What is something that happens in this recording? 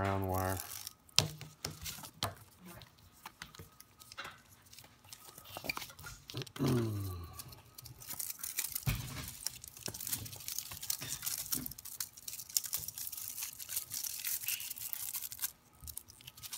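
Plastic wrap crinkles and rustles under hands.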